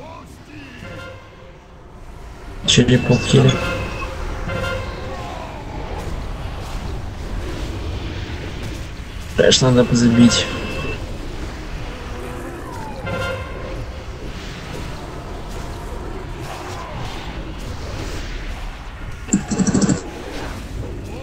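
Fantasy battle effects whoosh and crackle in a rush of spells.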